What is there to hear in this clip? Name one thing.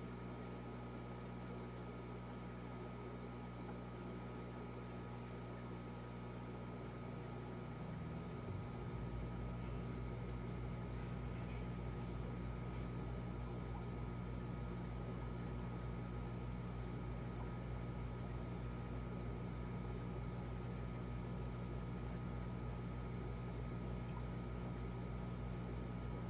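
Air bubbles trickle and burble in the water.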